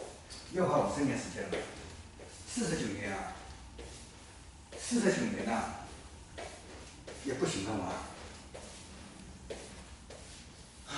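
Footsteps tread on a wooden floor.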